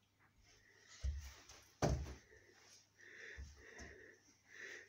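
A young girl stomps her feet on a wooden floor.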